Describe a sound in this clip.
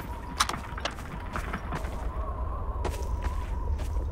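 A rifle is reloaded with metallic clicks.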